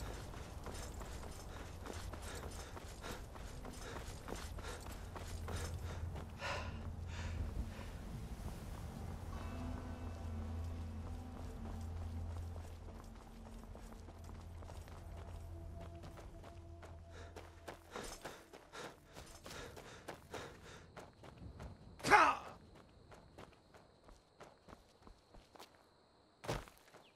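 Footsteps crunch steadily on stone and gravel.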